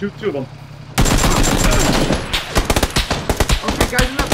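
Gunshots fire in rapid bursts.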